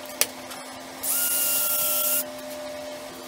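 A cordless drill whirs briefly.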